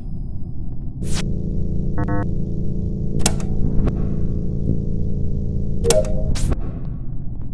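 An electrical hum buzzes steadily.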